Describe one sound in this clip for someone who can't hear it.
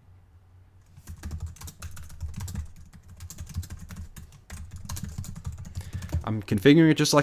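Keys clatter quickly on a computer keyboard.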